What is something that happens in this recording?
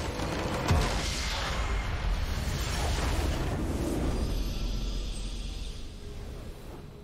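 A huge crystal structure shatters with a loud crash and rumble.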